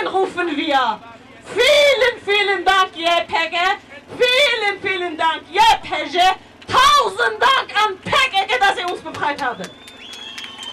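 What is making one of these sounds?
A young woman shouts passionately into a microphone through loudspeakers.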